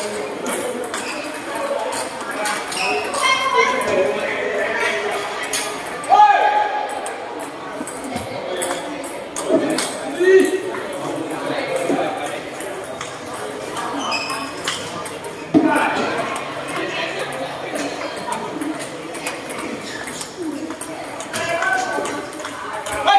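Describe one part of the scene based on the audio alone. Men talk and call out in the background.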